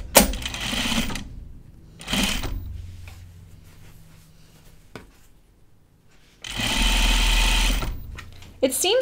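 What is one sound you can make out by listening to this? Fabric rustles as hands smooth and fold it.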